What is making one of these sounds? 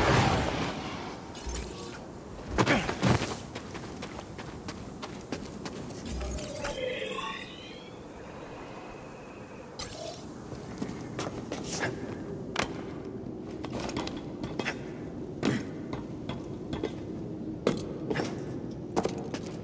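Footsteps tap on stone and metal.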